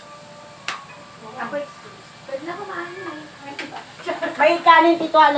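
Meat sizzles in a pan.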